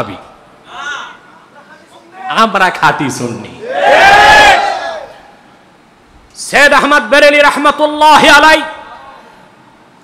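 A man speaks forcefully and chants into a microphone, heard through a loudspeaker with echo.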